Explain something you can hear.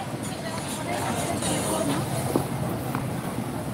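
A van drives past on the street.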